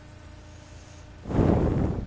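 A small car engine roars as it speeds off.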